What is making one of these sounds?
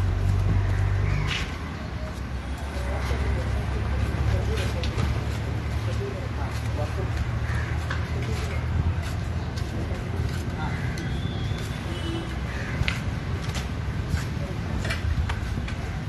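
A plastic sheet crackles and rustles as it is handled.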